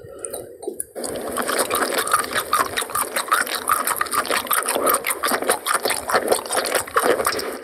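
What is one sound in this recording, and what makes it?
A young woman slurps and sucks on food.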